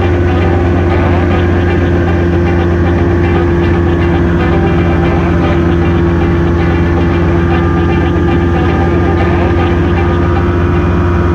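A small propeller plane's engine drones steadily up close.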